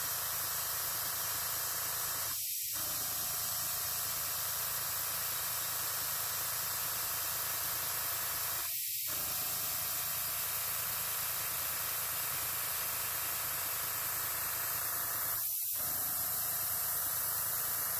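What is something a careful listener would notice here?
An airbrush hisses steadily, pausing briefly now and then.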